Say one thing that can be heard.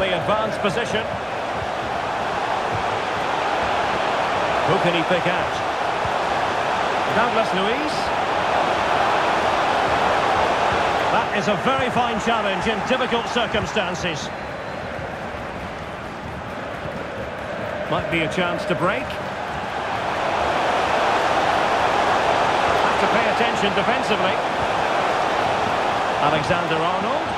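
A large crowd roars and chants steadily in a big stadium.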